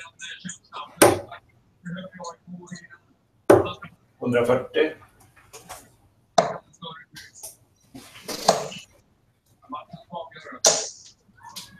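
Darts thud into a bristle dartboard.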